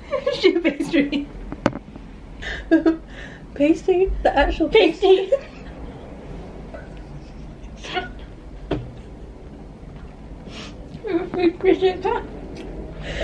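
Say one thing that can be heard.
Another young woman laughs loudly close by.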